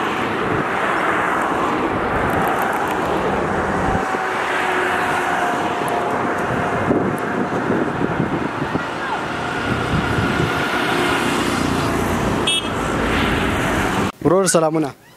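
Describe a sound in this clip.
An auto rickshaw engine putters past.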